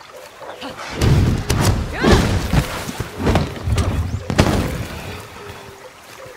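A heavy blade whooshes through the air and slams down with loud thuds.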